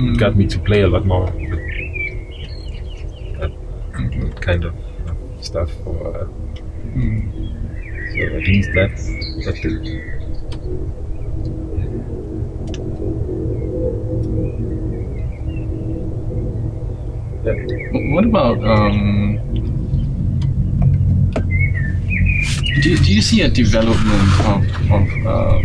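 A man speaks calmly nearby, pausing often.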